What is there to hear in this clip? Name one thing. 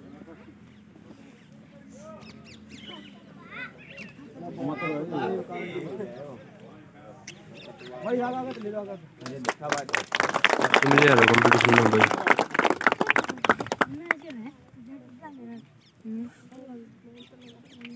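A crowd of men talks and calls out nearby outdoors.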